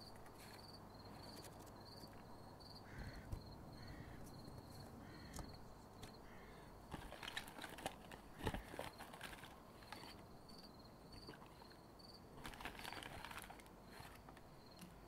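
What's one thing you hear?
Paper crinkles and rustles as a packet is opened.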